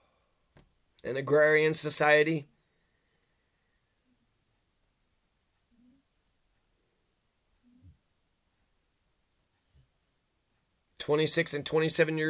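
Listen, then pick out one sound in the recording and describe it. A middle-aged man speaks calmly and close up into a microphone.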